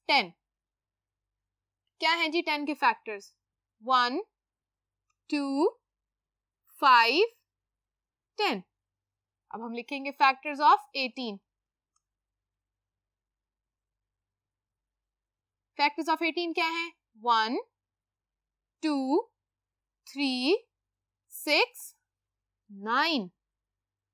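A young woman speaks calmly and clearly in short phrases, as if explaining a lesson.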